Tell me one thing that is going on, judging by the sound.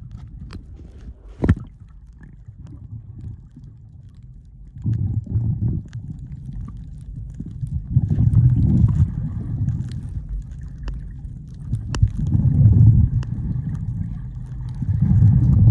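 Water rumbles and gurgles underwater, heard close.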